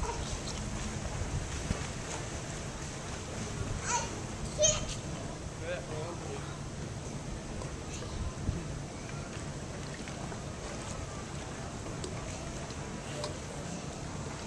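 Water splashes and laps as children swim.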